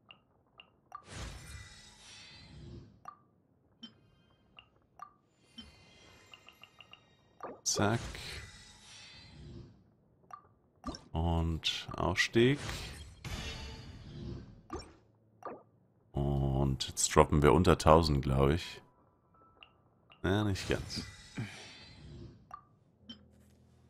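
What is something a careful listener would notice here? A bright, shimmering chime swells and fades several times, like a game's reward jingle.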